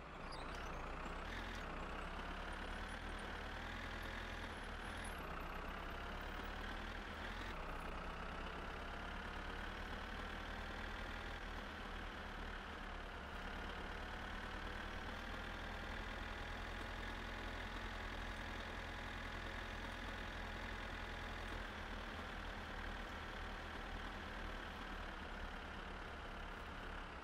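A tractor engine drones steadily, rising in pitch as it speeds up and dropping with each gear change.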